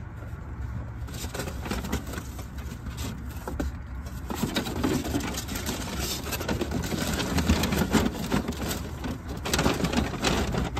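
A paper bag rustles and crinkles.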